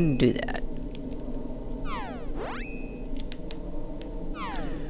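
Menu selections beep with short blips.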